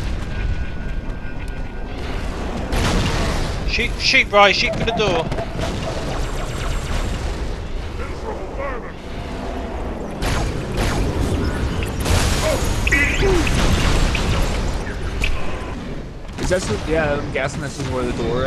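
Energy weapons fire and crackle in rapid bursts.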